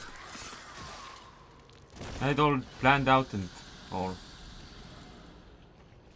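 Swords slash and strike in quick blows.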